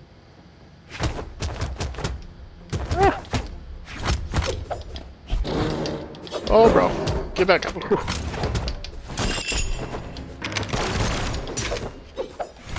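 Punches and blows land in quick succession in a fighting game.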